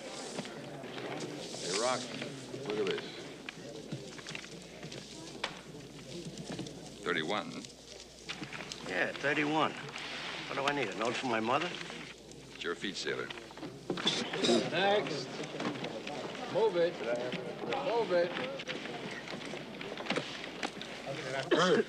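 A crowd murmurs in a large, echoing hall.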